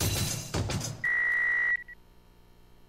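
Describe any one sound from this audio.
An electronic game tone beeps rapidly.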